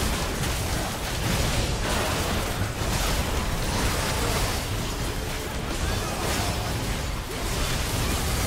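Magic spells burst and crackle in a game battle.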